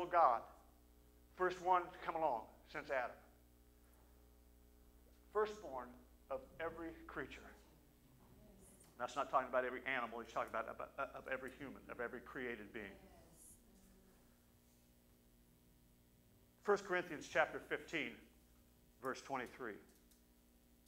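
A middle-aged man speaks with animation through a microphone in a large room, with pauses between phrases.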